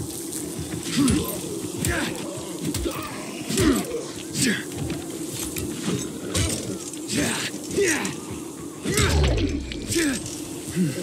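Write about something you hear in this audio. Heavy blows thud against bodies.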